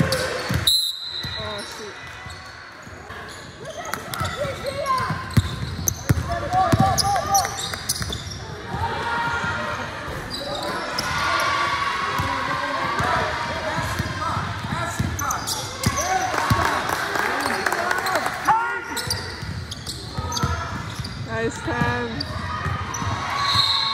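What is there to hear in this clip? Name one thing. Spectators chatter and call out in a gym that echoes.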